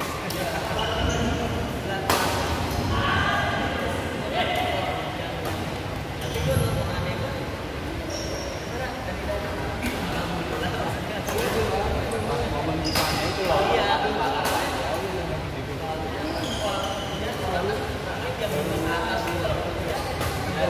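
Rackets smack a shuttlecock back and forth in an echoing hall.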